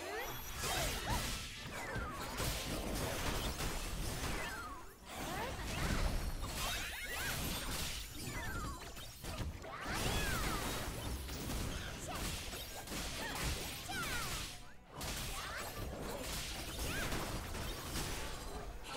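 Game combat effects whoosh and crash steadily.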